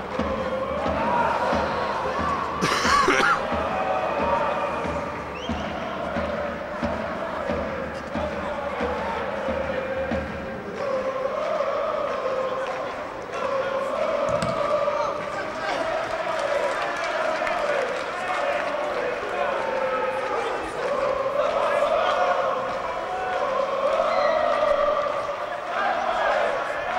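A crowd of spectators chants and sings steadily in a large open stadium.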